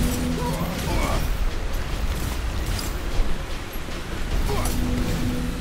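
Swords slash and clash in a fast fight.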